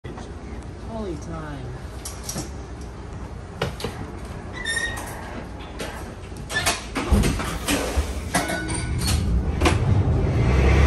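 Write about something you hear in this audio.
A streetcar rumbles along its tracks, growing louder.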